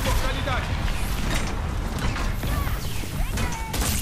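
A heavy hammer swings and smashes.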